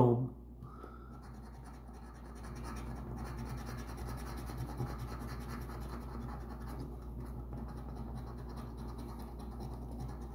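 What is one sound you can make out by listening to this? A coin scratches rapidly across a paper card.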